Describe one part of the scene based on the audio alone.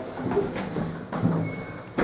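A finger presses an elevator button with a click.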